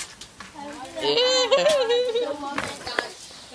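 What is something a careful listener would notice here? A young girl shouts playfully close by.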